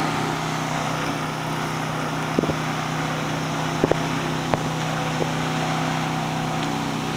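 A motorboat engine drones steadily far below.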